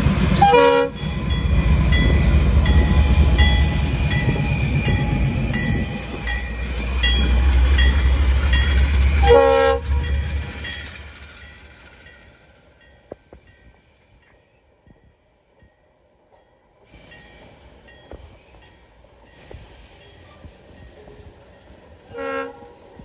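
Train wheels clatter rhythmically over the rails.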